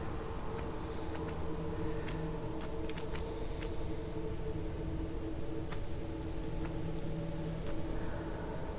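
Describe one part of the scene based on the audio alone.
Footsteps tap lightly on stone.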